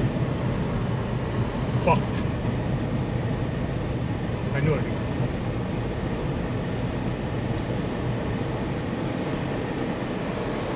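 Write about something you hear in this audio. A car drives along a paved road, heard from inside.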